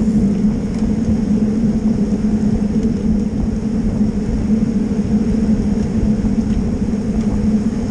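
Wind rushes and buffets loudly against a moving microphone.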